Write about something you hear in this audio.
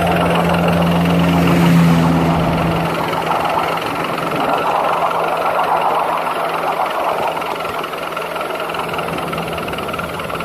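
A small steam locomotive chuffs steadily along.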